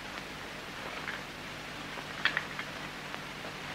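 Footsteps shuffle softly across a wooden floor.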